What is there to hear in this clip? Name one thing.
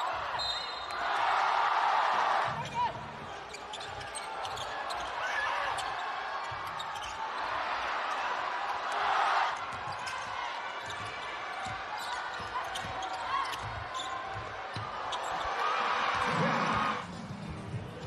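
A crowd in a large echoing hall cheers loudly in bursts.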